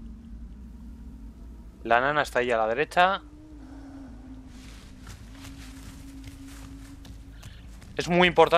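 Footsteps crunch through grass and leaves.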